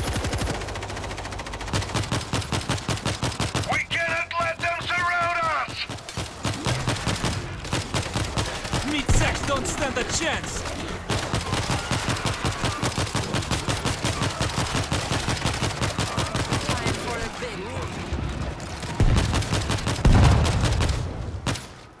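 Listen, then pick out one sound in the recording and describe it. A rifle fires rapid shots in quick bursts.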